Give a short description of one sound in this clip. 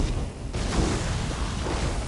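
Lightning crackles and zaps sharply.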